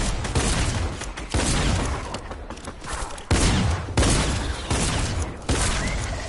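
Rifle shots ring out in bursts, each followed by a booming echo.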